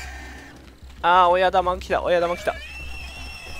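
A pig squeals loudly.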